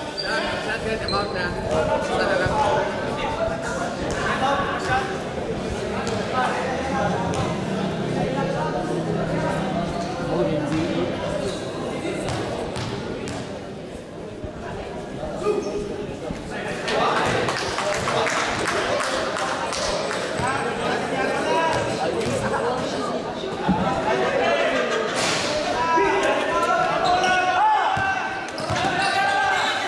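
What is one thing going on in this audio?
A crowd of spectators chatters and shouts in a large echoing hall.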